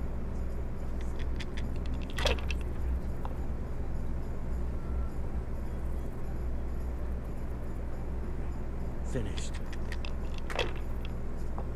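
Dice rattle and clatter across a wooden board.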